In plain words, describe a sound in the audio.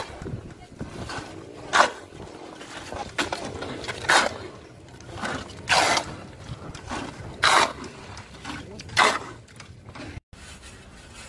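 Wet concrete scrapes and slaps as it is shovelled into a mould.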